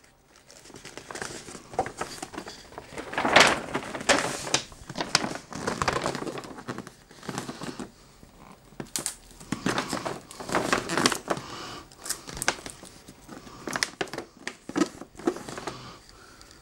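Paper crinkles and rustles as it is folded around a box.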